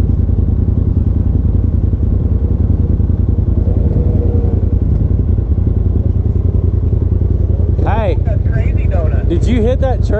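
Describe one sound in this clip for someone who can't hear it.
An off-road vehicle's engine rumbles steadily up close.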